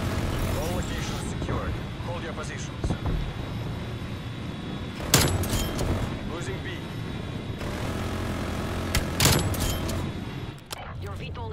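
A helicopter engine drones steadily.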